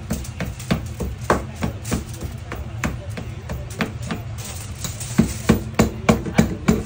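A pestle pounds rhythmically in a small bowl.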